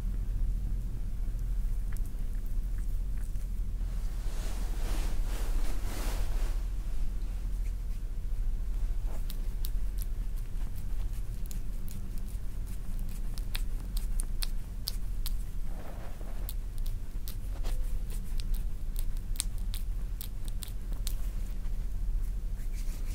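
Oily hands rub and squish against bare skin, with soft wet clicks.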